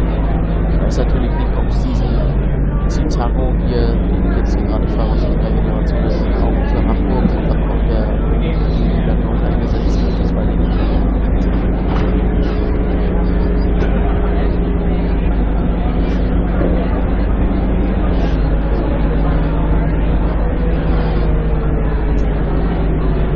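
A bus engine drones steadily while driving, its pitch shifting as it speeds up.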